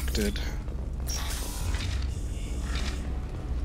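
A heavy sliding door hisses open.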